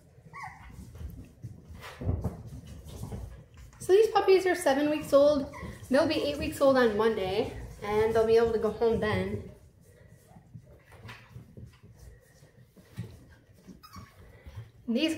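Small puppy paws patter and scamper across a wooden floor.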